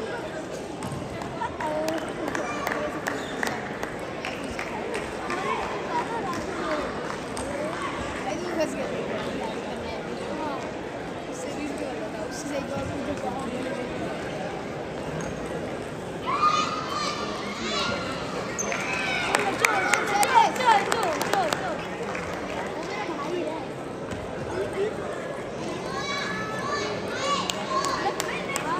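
Many people talk in a low murmur in a large echoing hall.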